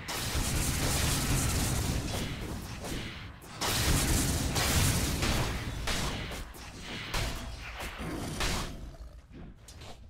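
Magic blasts and clashing weapons crackle and boom in a fight.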